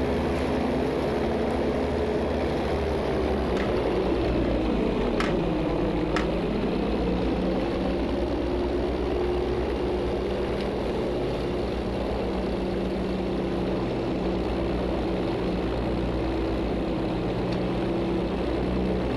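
Propeller aircraft engines drone loudly and steadily, dipping briefly in pitch.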